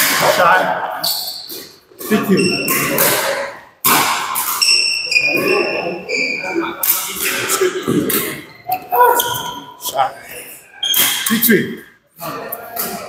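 Shuttlecocks are hit sharply with rackets in a large echoing hall.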